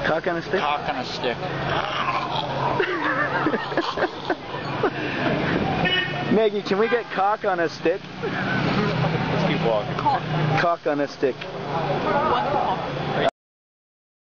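A busy street hums with crowd noise outdoors.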